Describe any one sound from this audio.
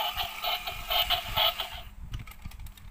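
A toy plays a bright electronic tune.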